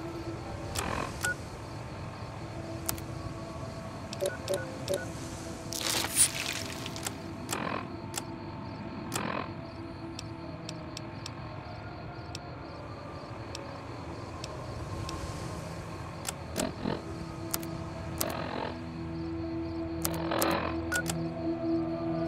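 Short electronic clicks and crackles sound as a handheld device's menu switches pages.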